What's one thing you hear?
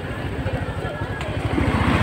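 A motorbike engine passes close by.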